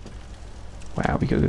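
A heavy body thumps onto wooden planks.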